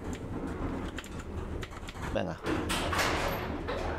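Elevator doors slide shut.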